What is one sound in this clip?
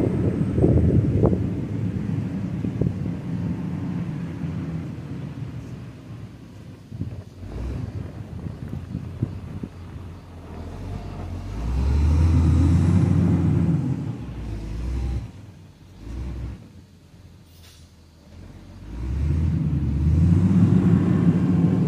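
A diesel engine rumbles loudly and rises and falls in strength, close by.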